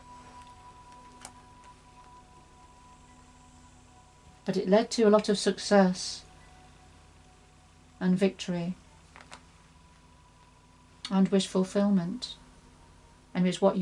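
Playing cards slide and tap softly on a cloth.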